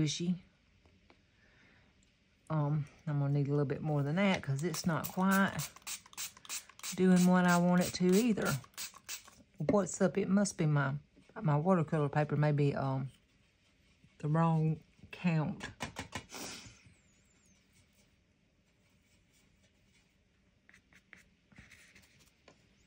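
A marker squeaks and scratches on paper.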